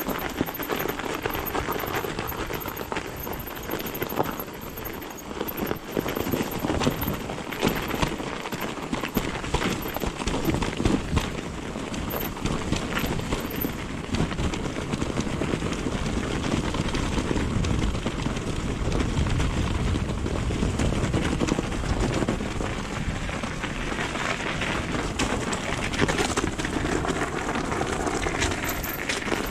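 Bicycle tyres crunch and squeak over packed snow.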